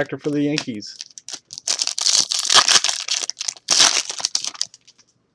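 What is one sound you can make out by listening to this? A plastic wrapper crinkles and rustles as it is torn open by hand.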